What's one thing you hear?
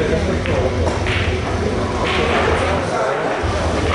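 Pool balls clack together and roll across the table.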